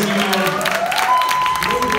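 A person claps their hands close by.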